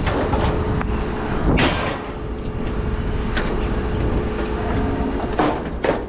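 Metal scrap clanks and rattles as it is handled.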